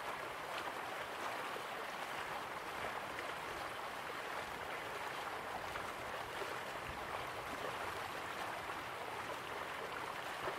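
Water splashes steadily down a small waterfall into a pool.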